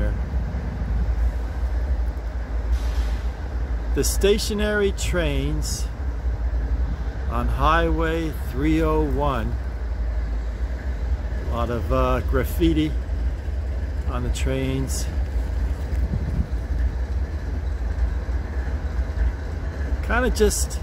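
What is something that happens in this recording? A long freight train rumbles steadily past close by.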